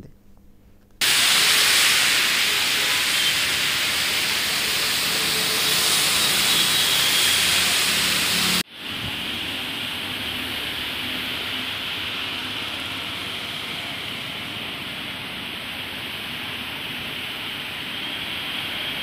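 Car tyres hiss through water on a road.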